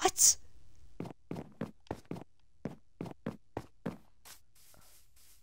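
Footsteps thud softly on grass and dirt.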